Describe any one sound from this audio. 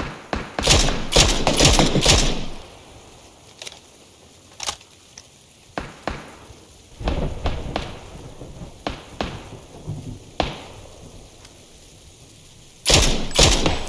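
Rifle shots crack loudly in quick succession.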